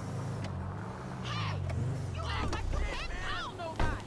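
A car door opens.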